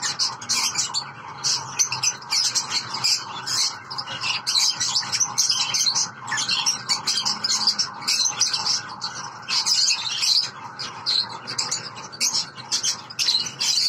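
A lovebird chirps and squawks rapidly and shrilly, close by.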